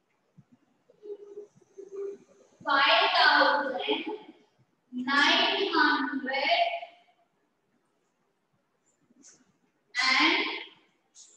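A woman speaks clearly and slowly, as if teaching, close by.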